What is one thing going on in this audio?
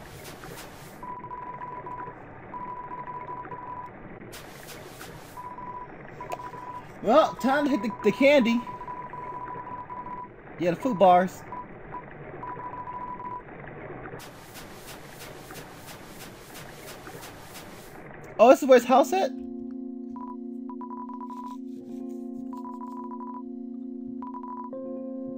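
Short electronic blips sound as game dialogue text types out letter by letter.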